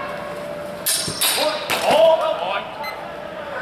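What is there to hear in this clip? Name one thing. Training swords clash with sharp knocks.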